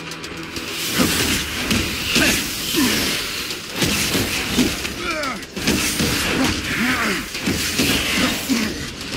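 Heavy blows and impacts crash during a fight.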